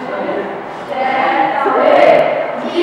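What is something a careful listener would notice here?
A young woman talks nearby with animation.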